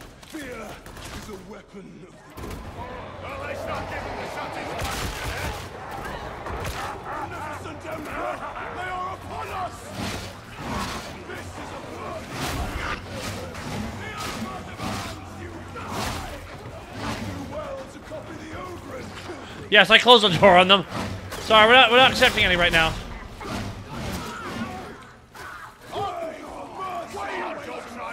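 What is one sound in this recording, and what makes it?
Gunfire and combat sounds from a video game play continuously.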